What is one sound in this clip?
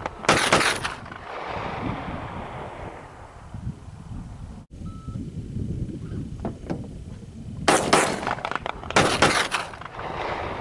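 Gunshots ring out loudly inside a car, each followed by a ringing echo.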